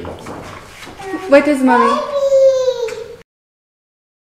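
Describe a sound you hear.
A young girl shouts excitedly.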